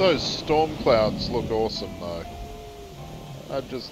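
A whale's spout sprays water into the air.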